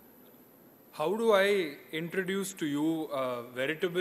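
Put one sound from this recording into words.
A young man speaks calmly into a microphone.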